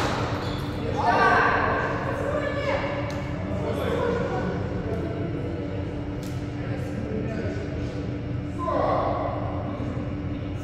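Young men talk and call out between rallies, echoing in a large hall.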